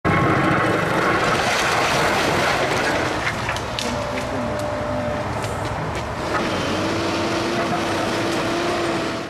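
A heavy excavator engine rumbles steadily.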